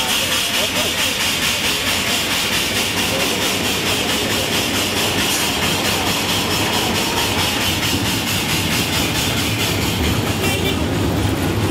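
Heavy steel wheels roll slowly and creak along rails.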